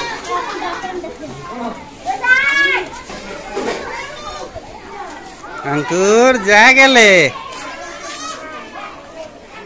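Children chatter and call out close by, outdoors.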